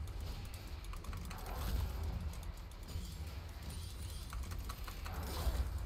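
Game characters clash in a fight with sharp hits.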